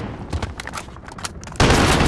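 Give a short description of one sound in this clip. A rifle magazine clicks as it is reloaded.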